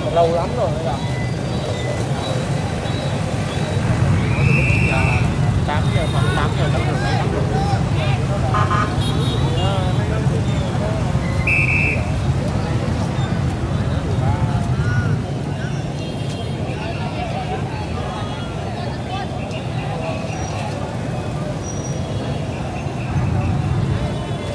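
A crowd of people talk and murmur nearby outdoors.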